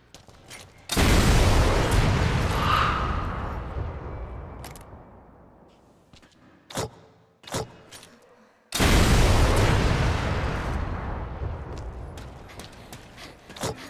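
A rifle fires loud booming shots that echo and slowly fade.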